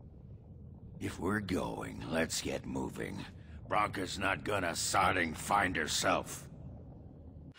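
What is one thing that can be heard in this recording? A gruff man speaks with animation, heard close up.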